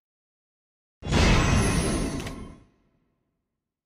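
A deep dramatic game sound effect booms and fades.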